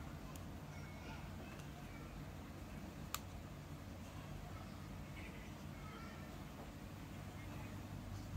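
Cord rustles softly as fingers pull it through a braid.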